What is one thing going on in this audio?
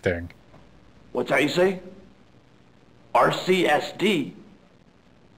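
A man speaks in short phrases, close by.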